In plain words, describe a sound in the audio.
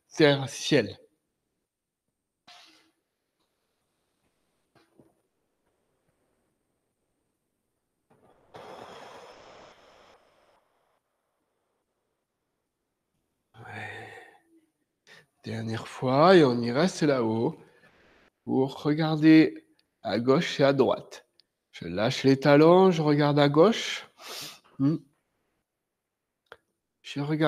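A man speaks calmly and clearly, close by, in short phrases with pauses.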